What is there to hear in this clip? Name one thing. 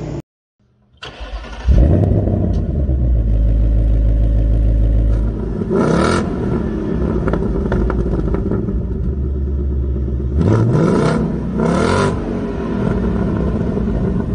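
A second car engine rumbles loudly and roars as it is revved.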